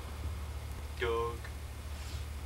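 A young man lets out a short, sliding vocal call close by.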